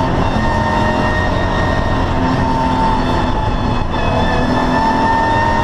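A race car engine roars loudly from inside the cabin, its pitch rising and dipping as the driver shifts gears.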